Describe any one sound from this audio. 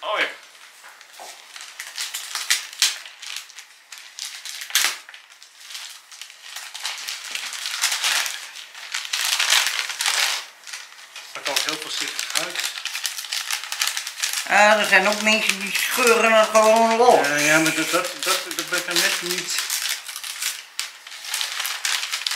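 Wrapping paper rustles and tears as a present is unwrapped.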